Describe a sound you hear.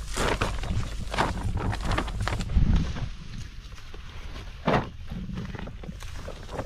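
Wind blows across open ground outdoors.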